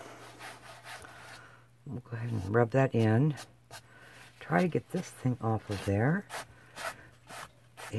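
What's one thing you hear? Fingers rub softly across a canvas.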